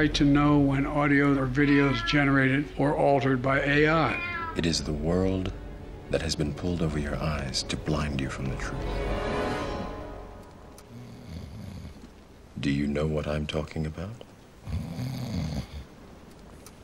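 A man speaks slowly in a deep, calm voice.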